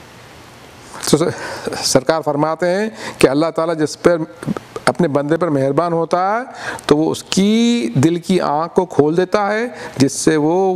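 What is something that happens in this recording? A middle-aged man recites in a melodic, chanting voice through a microphone.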